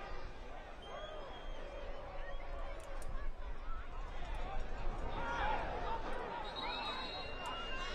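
A stadium crowd murmurs and shouts.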